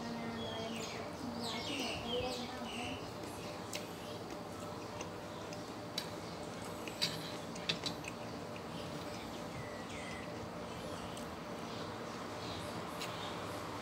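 A man slurps noodles.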